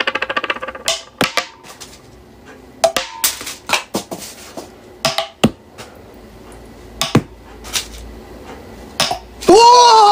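Small candies click against a plastic bottle.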